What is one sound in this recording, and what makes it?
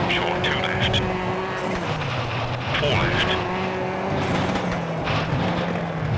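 A rally car engine revs and drones, shifting pitch as gears change.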